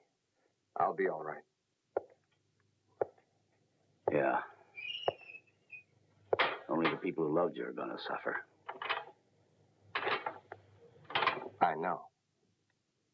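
An older man speaks in a low, serious voice.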